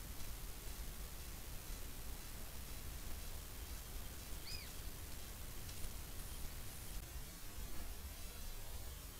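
Dry leaves rustle softly under an animal's paws.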